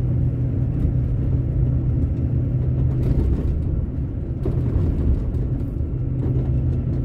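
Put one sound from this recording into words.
Tyres roll over rough asphalt.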